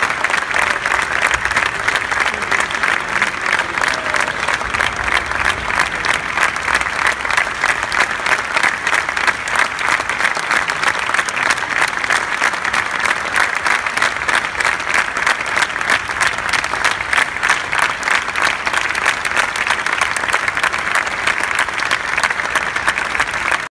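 An audience applauds loudly and steadily in a large hall.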